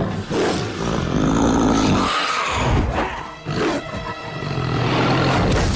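A large beast growls deeply.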